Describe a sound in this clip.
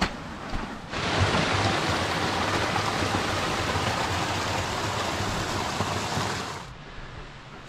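A small waterfall splashes and gurgles close by.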